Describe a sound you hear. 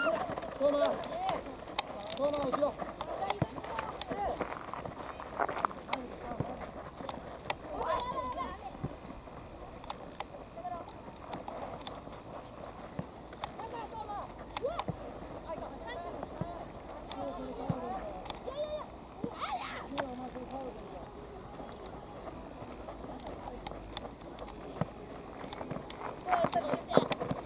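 Boys shout and call to each other across an open field.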